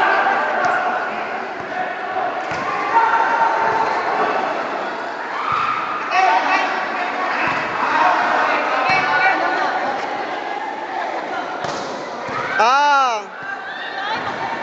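A crowd of young people chatter and call out in a large echoing hall.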